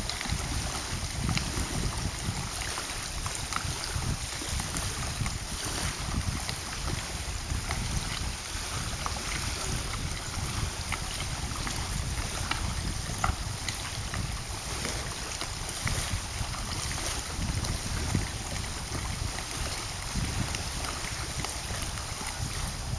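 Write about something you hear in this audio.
Wind blusters into a microphone outdoors.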